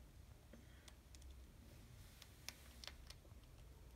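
A hamster rustles through dry bedding.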